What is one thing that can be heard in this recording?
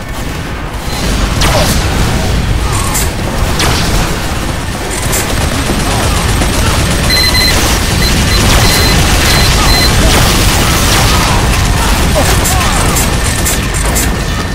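A heavy rotary gun fires in a loud, steady roar.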